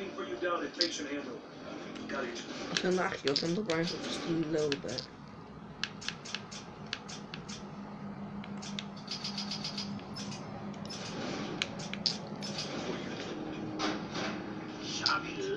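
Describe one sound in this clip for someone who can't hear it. Video game sounds and music play from a television speaker.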